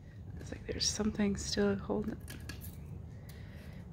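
Tape peels off a plastic box.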